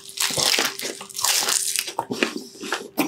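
A man bites into crispy fried food with a loud crunch close to a microphone.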